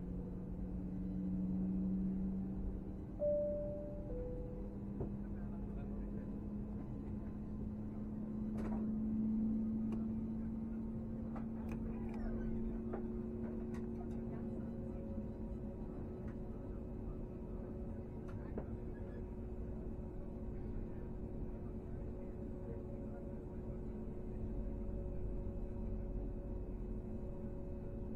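Jet engines hum steadily from inside an airliner cabin.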